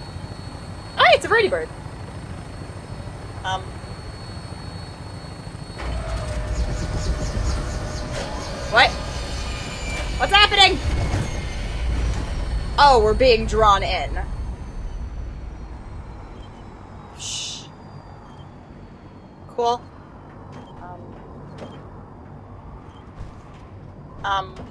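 A young woman talks and laughs close to a headset microphone.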